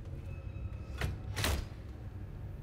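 A metal cabinet door clicks and creaks open.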